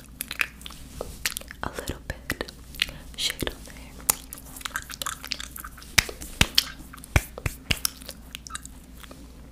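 A young woman makes close, wet mouth sounds and clicks into a microphone.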